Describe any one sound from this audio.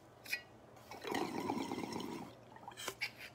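A man exhales a long, breathy puff close by.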